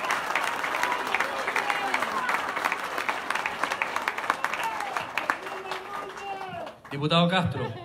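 A crowd claps and cheers loudly in a large room.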